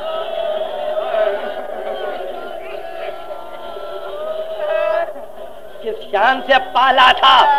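A man sings in a drawn-out, wavering voice on an old, hissy recording.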